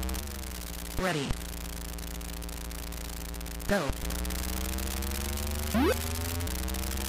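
Electronic beeps sweep quickly in pitch a few times.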